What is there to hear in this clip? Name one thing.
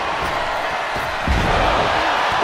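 A heavy body slams onto a wrestling ring mat with a thud.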